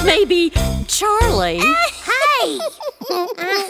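A young girl's cartoon voice speaks with animation.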